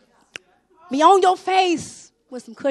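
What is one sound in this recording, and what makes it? A woman sings out loudly through a microphone.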